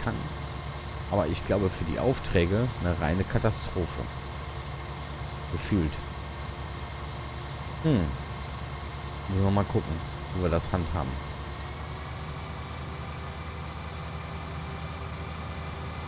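A combine harvester engine drones steadily.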